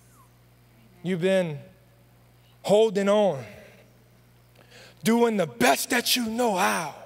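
A man speaks with animation through a microphone, pausing between phrases.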